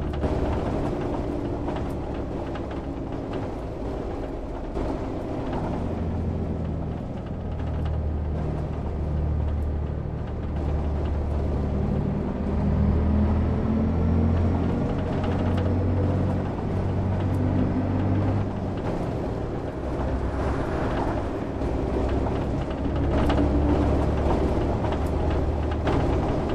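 A bus engine hums low and steady, rising and falling as it drives.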